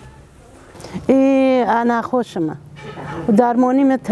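An elderly woman speaks with animation close by.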